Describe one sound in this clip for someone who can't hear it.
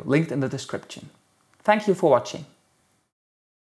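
A young man speaks calmly and clearly into a small clip-on microphone.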